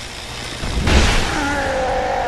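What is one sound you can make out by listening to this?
A sword clashes with a sharp ring.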